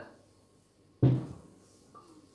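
A metal utensil clatters against a plate.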